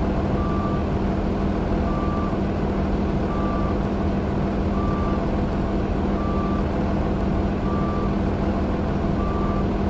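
A diesel city bus engine idles.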